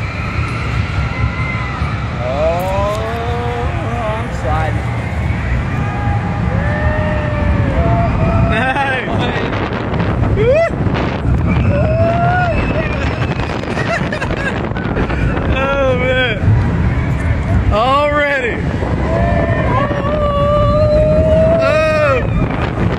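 A roller coaster rumbles steadily along its track.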